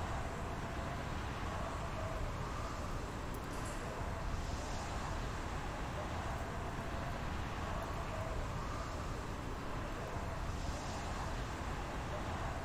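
Wind rushes loudly and steadily.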